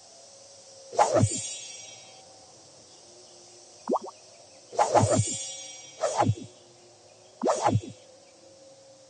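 Short game chimes and whooshes play as menus open.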